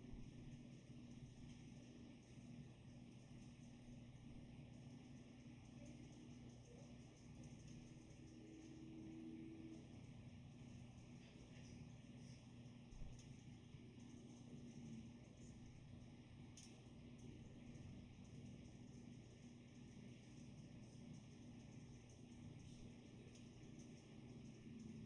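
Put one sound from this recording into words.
Music plays quietly.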